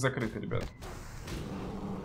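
A fiery spell whooshes.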